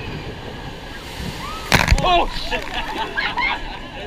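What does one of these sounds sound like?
A boat crashes into water with a big splash.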